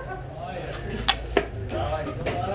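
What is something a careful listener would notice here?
A wooden game piece clacks down on a board.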